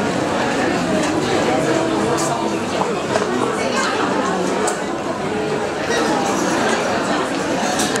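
A man speaks through a microphone over loudspeakers.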